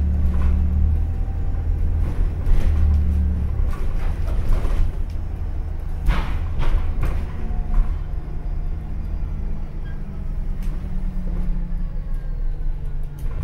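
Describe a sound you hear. A bus engine hums and rumbles low and steady.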